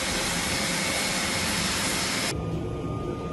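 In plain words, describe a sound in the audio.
Aircraft engines roar loudly outdoors.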